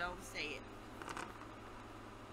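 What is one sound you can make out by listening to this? Dice rattle and tumble across a board.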